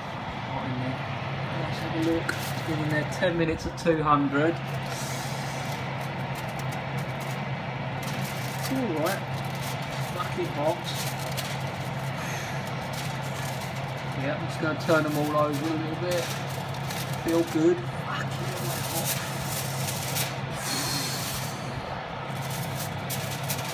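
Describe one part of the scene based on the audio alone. An oven fan hums steadily.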